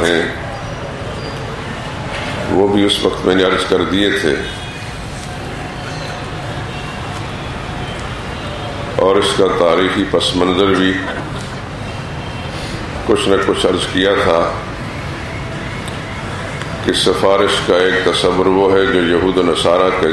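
A man speaks slowly and solemnly into a microphone, heard through loudspeakers with an echo.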